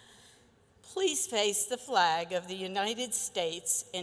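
An older woman speaks into a microphone.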